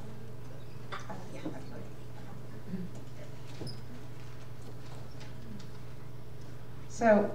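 A woman speaks through a microphone in a large echoing hall.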